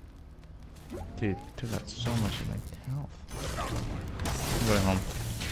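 Blasts and hits crackle in a video game fight.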